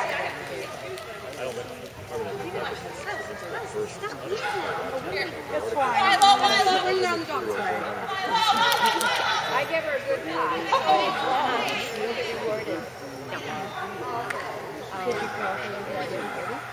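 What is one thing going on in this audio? A crowd of people murmurs in the background.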